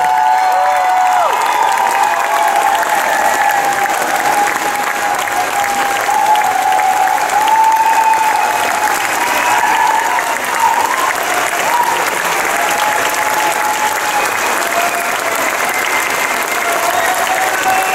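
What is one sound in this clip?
A large audience applauds loudly and steadily in a big hall.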